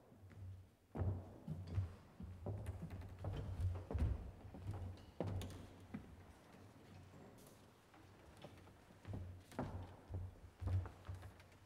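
A pipe organ plays low notes that echo through a large hall.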